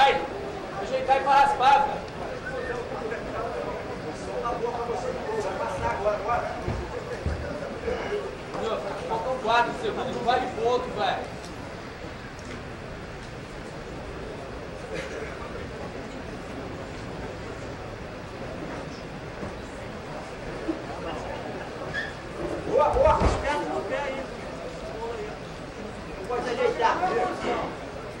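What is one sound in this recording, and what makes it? A crowd of spectators murmurs and shouts encouragement nearby.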